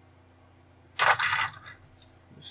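Plastic model parts clatter as a hand moves them.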